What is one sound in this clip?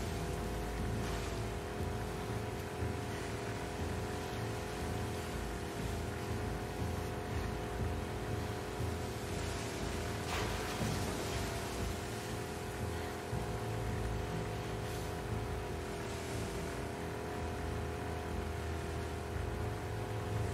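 A small outboard motor hums steadily.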